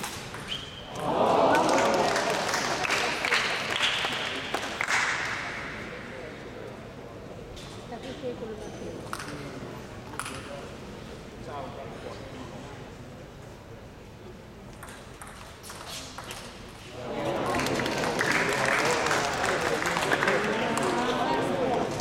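A crowd of spectators cheers and claps in a large echoing hall.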